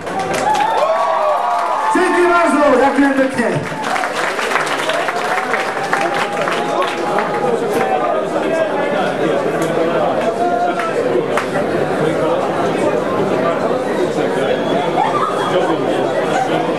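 A crowd cheers and whistles in a large echoing hall.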